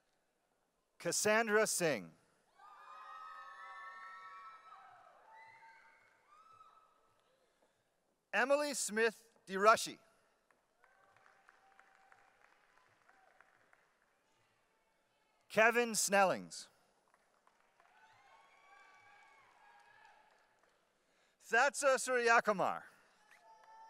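A man reads out names through a microphone and loudspeakers in a large hall.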